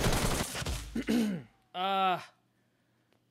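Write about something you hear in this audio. A young man exclaims loudly into a microphone.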